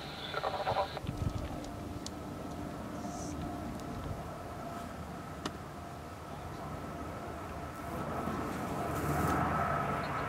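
A propeller plane drones faintly in the distance.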